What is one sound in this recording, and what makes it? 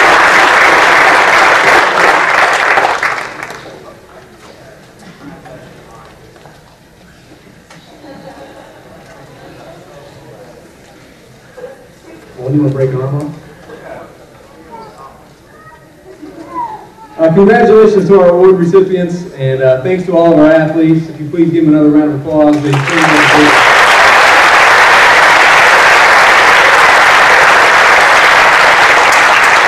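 An audience applauds loudly in a large hall.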